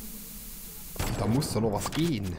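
A bomb explodes with a loud bang in a video game.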